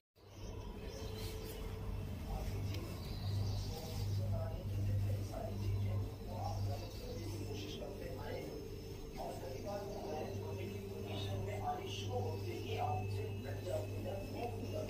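Cloth rustles softly as it is moved.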